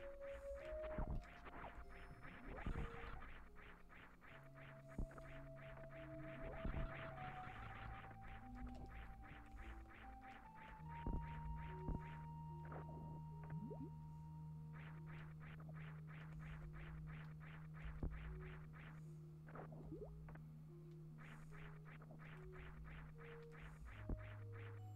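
Retro video game music plays with a steady beeping melody.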